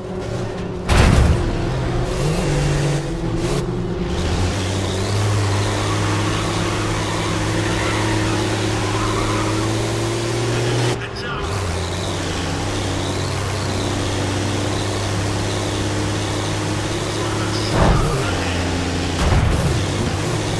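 A heavy thud comes as a racing truck lands after a jump.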